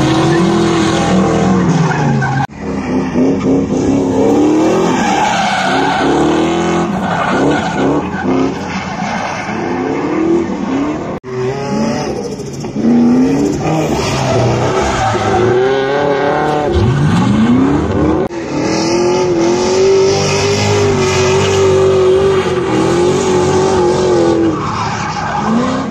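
A car engine revs hard and roars.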